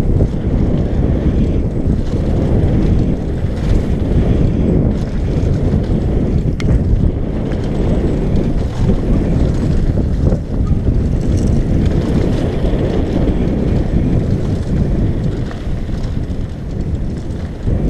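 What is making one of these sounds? Bicycle tyres crunch and rattle over a gravel trail.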